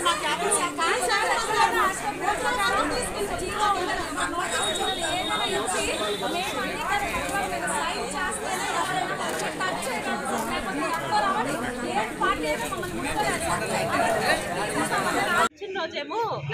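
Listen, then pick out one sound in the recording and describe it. A crowd of women shout and argue all at once outdoors.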